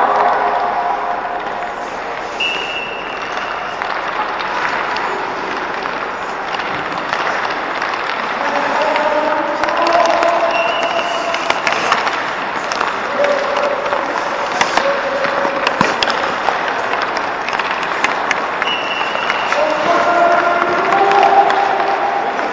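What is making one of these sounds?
Young players call out and shout across the rink.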